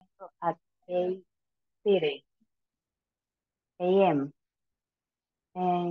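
A woman speaks slowly and clearly over an online call, with pauses between words.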